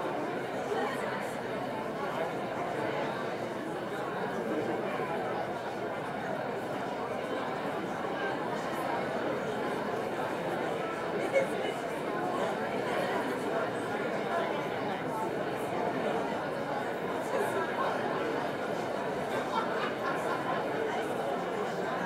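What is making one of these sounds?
A large audience chatters in an echoing hall.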